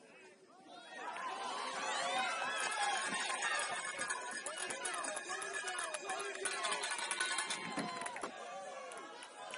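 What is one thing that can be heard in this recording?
Young men on a sideline shout and cheer excitedly outdoors.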